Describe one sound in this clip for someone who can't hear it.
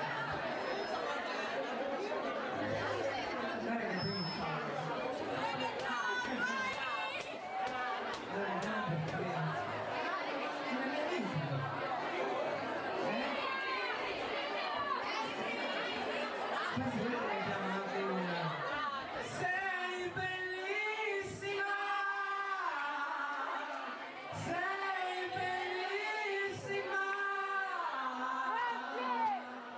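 A woman sings through a microphone and loudspeakers.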